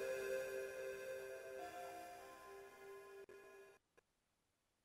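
A soft electronic chime rings out with sustained tones and slowly fades away.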